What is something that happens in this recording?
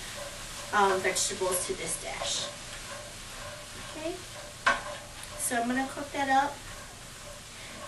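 A utensil scrapes and clatters against a pan while noodles are stirred.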